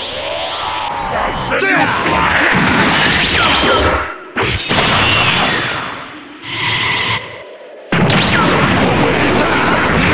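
Energy blasts whoosh and explode in a video game.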